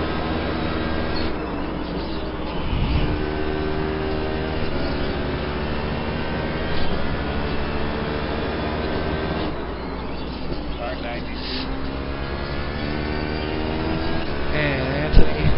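A racing car engine roars steadily, its pitch rising and falling as gears shift.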